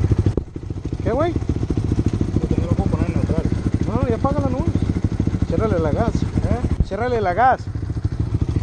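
A man talks close by, over the engine.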